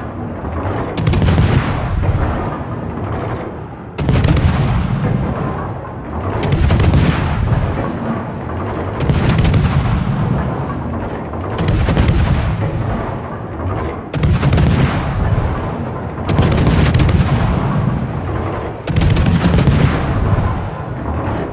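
Anti-aircraft guns crackle and pop rapidly.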